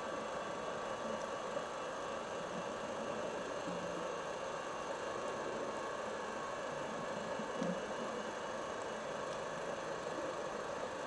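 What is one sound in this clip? Air bubbles gurgle and rumble steadily underwater.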